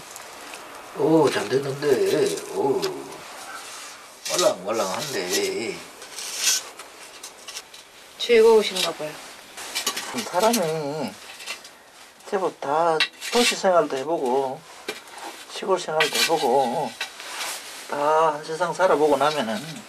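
A middle-aged man talks calmly up close.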